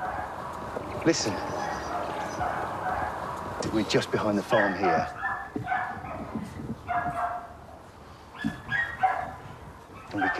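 A middle-aged man speaks calmly nearby, outdoors.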